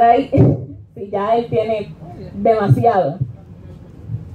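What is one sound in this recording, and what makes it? A woman speaks with animation into a microphone in an echoing room.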